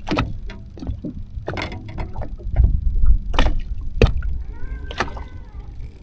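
Gear knocks and clatters on a boat's deck.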